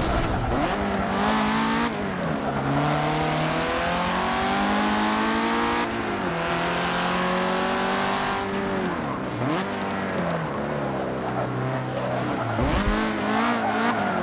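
Tyres screech as a car drifts through corners.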